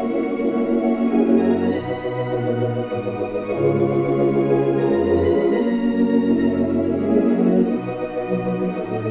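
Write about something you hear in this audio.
An organ plays slow, sustained chords.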